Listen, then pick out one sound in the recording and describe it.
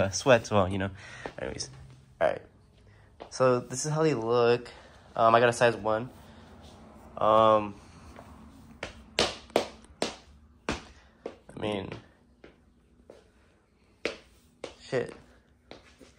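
Soft footsteps in socks pad across a wooden floor.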